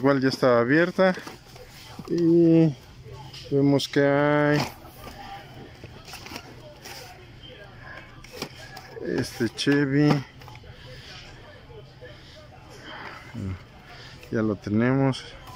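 Plastic packages click and rustle as a hand flips through them.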